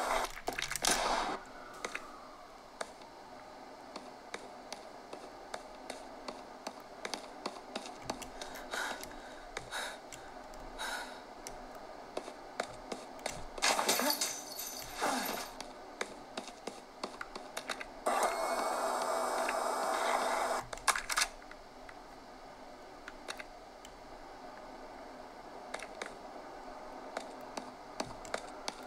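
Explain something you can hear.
Game sounds play from a handheld console's small speakers.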